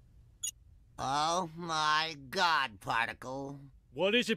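A man speaks with animation in a nasal voice.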